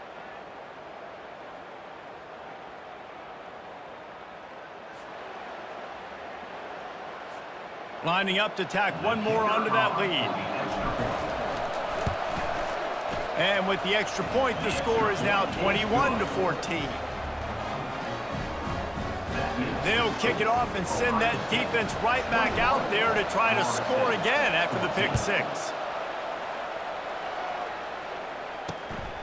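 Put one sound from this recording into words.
A large stadium crowd roars and cheers steadily.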